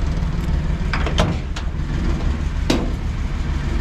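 A car door latch clicks open.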